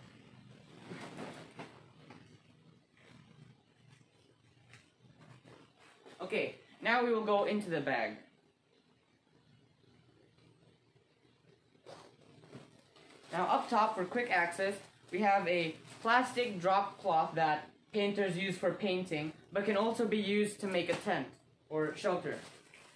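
A backpack's fabric rustles as it is packed.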